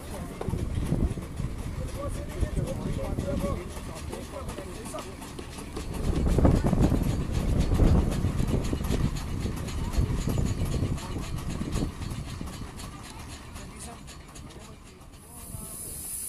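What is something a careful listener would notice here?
Gusty wind rumbles outdoors.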